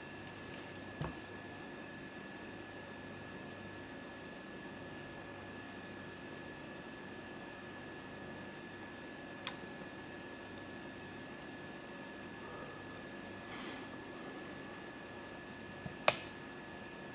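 Buttons on a handheld game console click.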